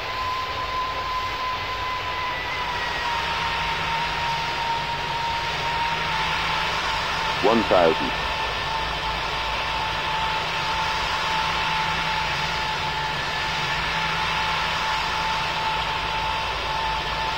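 A jet engine roars steadily with a high, thin whine.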